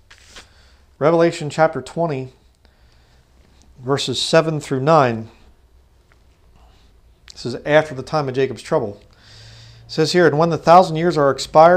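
A man reads aloud calmly and clearly into a close microphone.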